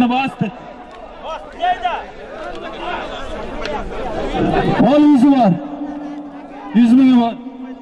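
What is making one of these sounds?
A crowd of men shouts and calls out close by.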